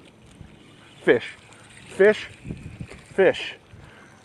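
A fishing reel buzzes in short, rising bursts close by.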